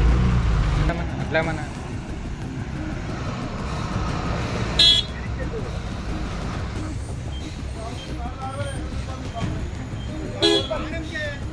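A bus engine idles.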